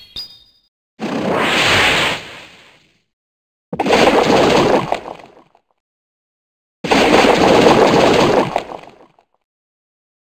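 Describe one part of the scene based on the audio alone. Fiery whooshing bursts blast loudly.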